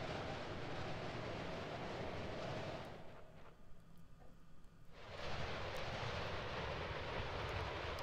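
Rushing water roars steadily, fades away briefly and then returns.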